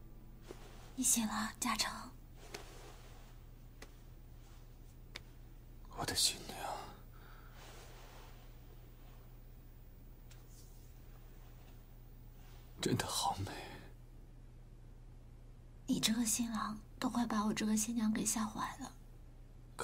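A young woman speaks softly and tenderly nearby.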